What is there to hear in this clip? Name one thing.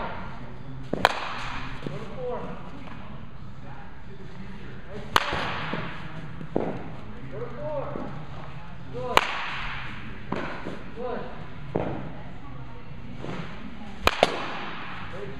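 A bat hits a ball with a sharp crack, again and again.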